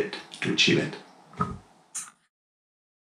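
A man speaks calmly to the listener, close to a microphone.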